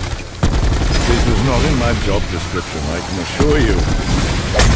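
A monster growls and snarls close by.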